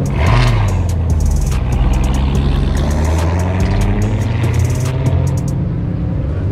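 A car exhaust pops and crackles sharply.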